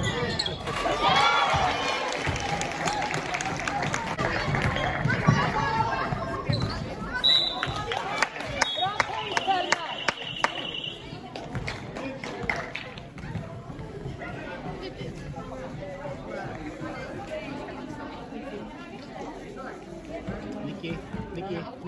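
Young women shout and call out to each other.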